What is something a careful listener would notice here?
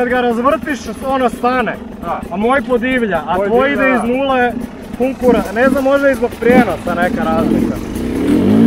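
A dirt bike engine revs in short, sharp bursts close by.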